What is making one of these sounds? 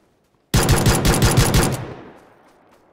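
A pistol fires a rapid series of shots.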